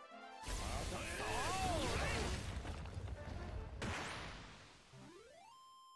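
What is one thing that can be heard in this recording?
A loud magical blast roars and crackles.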